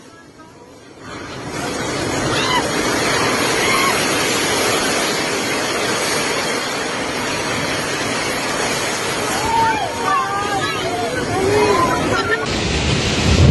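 Strong wind roars through a large echoing hall.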